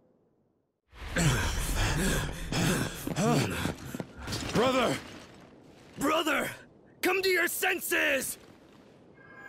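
A man shouts with urgency, close by.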